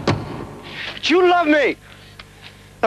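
A man calls out loudly.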